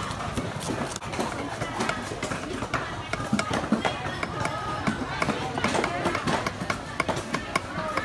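A knife chops with quick taps on a wooden block.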